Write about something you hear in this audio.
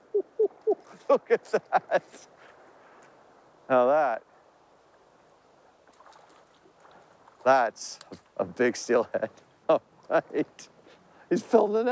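Water splashes around a man's legs as he wades.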